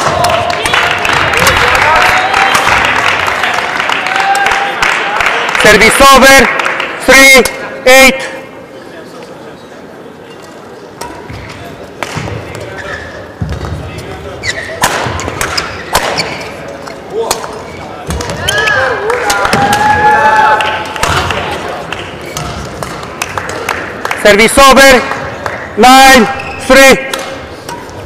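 A crowd cheers and claps loudly in a large echoing hall.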